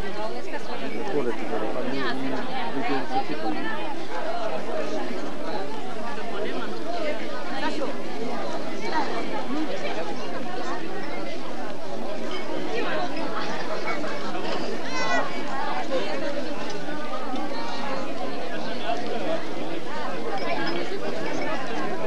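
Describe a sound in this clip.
A crowd of men and women talks and murmurs all around, outdoors.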